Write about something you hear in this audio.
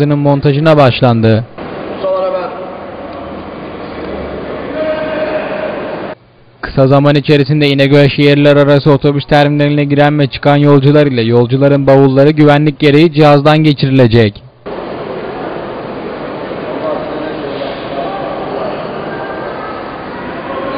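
Voices murmur faintly in a large echoing hall.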